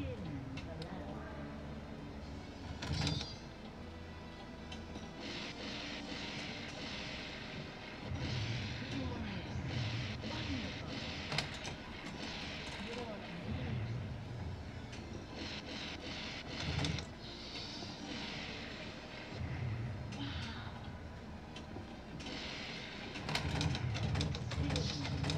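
Pinball flippers clack and a ball knocks against bumpers.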